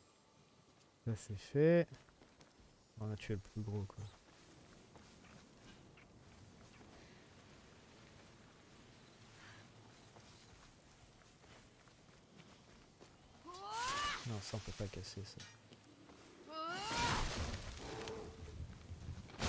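Footsteps patter quickly on grass.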